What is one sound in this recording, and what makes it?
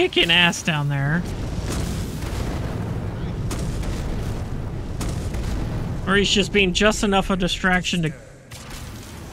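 A magic spell hums and crackles steadily.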